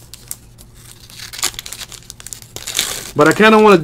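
Plastic wrapping crinkles and tears as a pack is ripped open.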